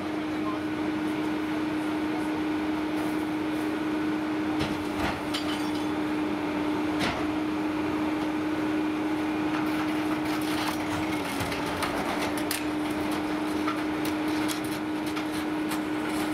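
A garbage truck engine idles with a steady hum.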